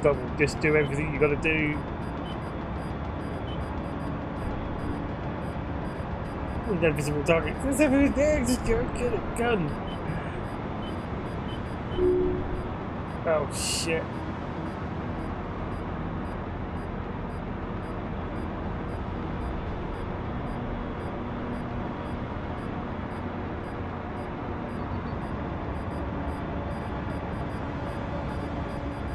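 An engine hums steadily throughout.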